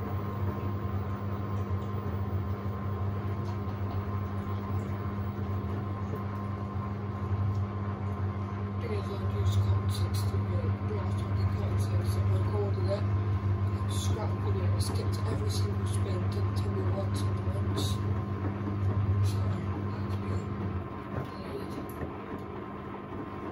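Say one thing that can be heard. Water and wet laundry slosh inside a washing machine drum.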